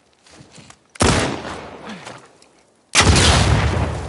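Gunshots bang loudly and echo away.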